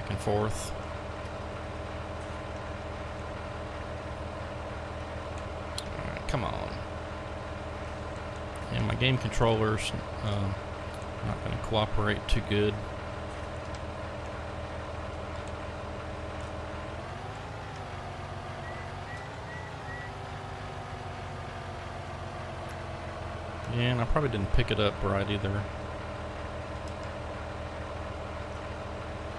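A heavy diesel engine idles with a steady low hum.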